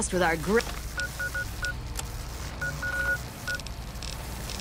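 A handheld electronic device gives short, high beeps in quick bursts.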